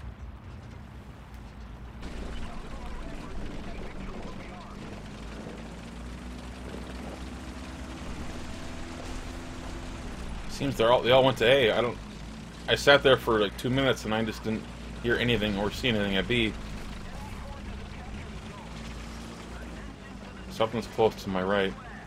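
A tank engine rumbles low and steadily as the tank drives.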